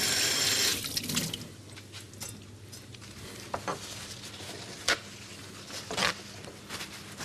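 Dishes clink and clatter.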